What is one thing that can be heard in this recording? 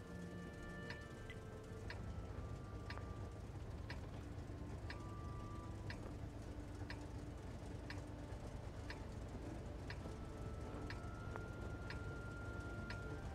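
A heavy tank engine idles with a low, steady rumble.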